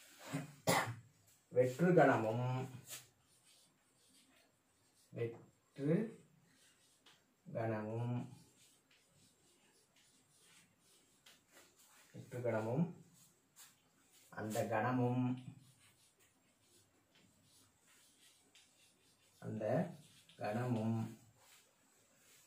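A man speaks slowly and calmly, in short phrases with pauses, close by.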